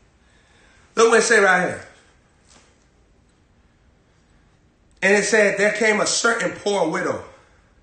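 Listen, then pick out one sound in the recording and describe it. A young man reads aloud with animation close by.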